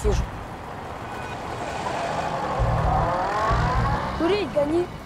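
A car drives past, its engine swelling and then fading.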